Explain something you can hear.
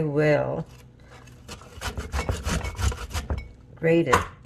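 A metal grater rasps rapidly against ginger.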